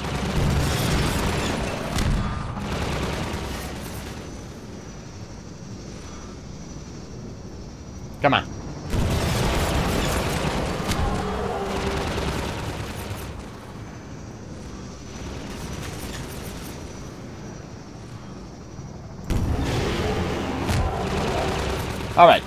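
Explosions boom and roar loudly.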